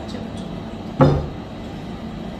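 A glass jug knocks against a metal pot.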